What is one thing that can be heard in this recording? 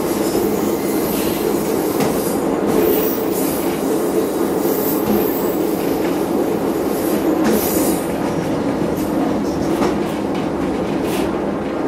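Wheels click over rail joints.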